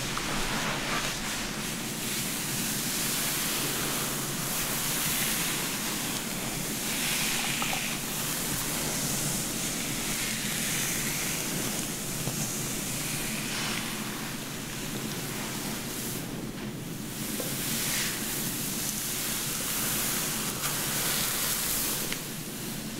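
Hands rustle and brush through long hair close up.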